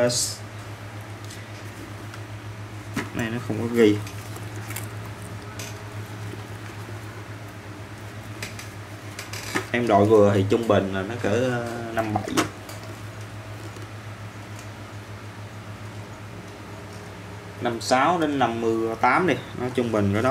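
Hands turn and handle a plastic helmet with soft scrapes and taps.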